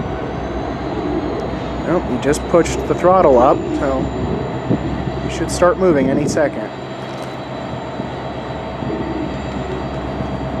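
A diesel locomotive engine idles nearby with a steady low rumble.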